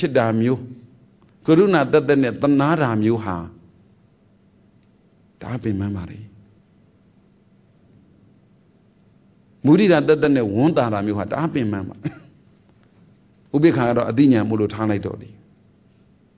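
A man speaks calmly and closely into a microphone, with pauses.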